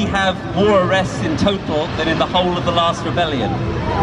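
A man speaks loudly into a microphone through a loudspeaker outdoors.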